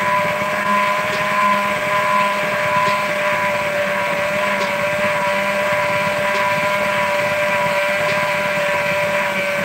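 An electric hand mixer whirs steadily in a bowl.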